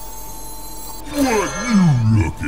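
A card game plays a bright magical sound effect as a card is played.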